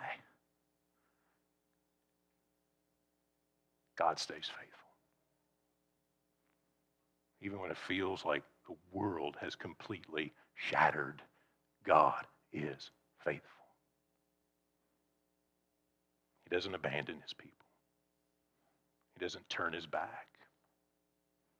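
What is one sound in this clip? A man speaks with animation through a microphone, pausing between phrases.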